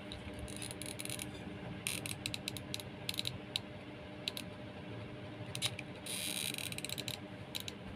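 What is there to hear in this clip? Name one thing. A glue gun clicks as its trigger is squeezed.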